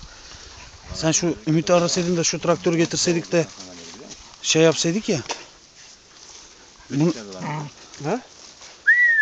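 Dogs bark and yelp excitedly close by.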